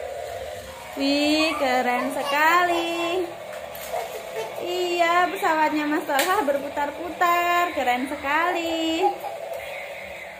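A toy helicopter plays a loud warbling electronic tune.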